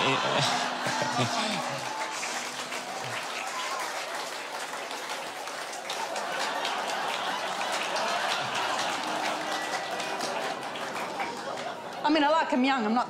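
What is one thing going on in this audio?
An audience laughs and cheers loudly in a large room.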